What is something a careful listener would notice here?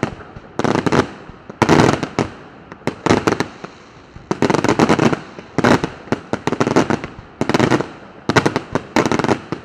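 Fireworks burst in rapid crackling volleys overhead.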